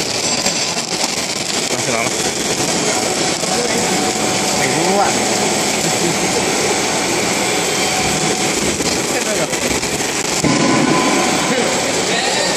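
A snack food extruder line runs with a steady mechanical whir.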